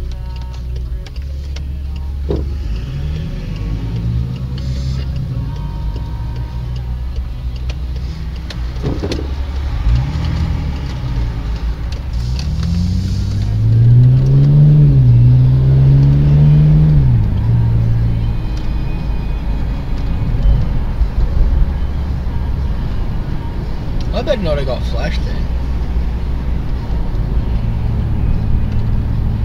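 Tyres roll steadily over the road.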